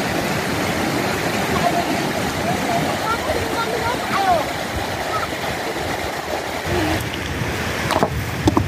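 A shallow stream gurgles and splashes over rocks outdoors.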